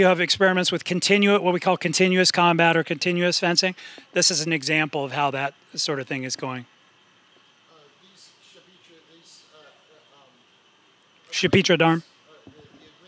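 An older man speaks calmly into a microphone, as if lecturing.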